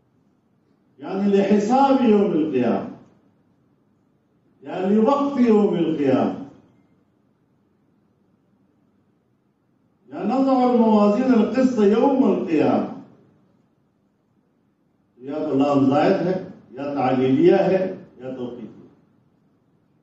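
An elderly man recites in a slow, chanting voice through a microphone, in long phrases with pauses between them.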